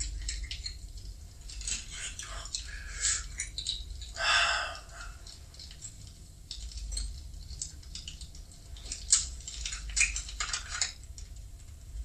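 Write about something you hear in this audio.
Small objects rustle and clink as they are handled close by.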